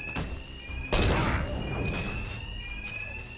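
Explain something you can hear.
Ice shatters with a sharp crack.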